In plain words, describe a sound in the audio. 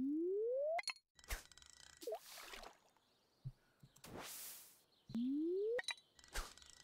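A fishing rod winds up with a rising tone.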